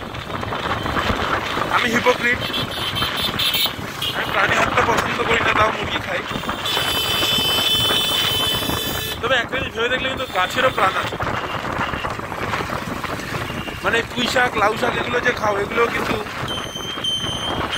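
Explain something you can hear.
A motorbike engine hums steadily while riding along a road.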